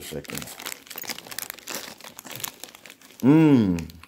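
Foil crinkles and rustles in a hand close by.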